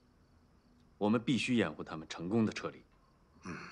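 A man speaks calmly and earnestly.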